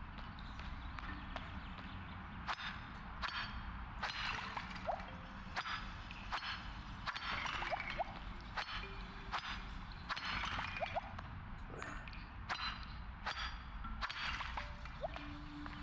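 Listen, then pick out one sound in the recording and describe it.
A tool strikes stone with sharp knocks.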